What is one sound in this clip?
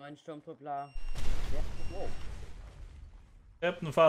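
A fiery explosion bursts with a deep rumble.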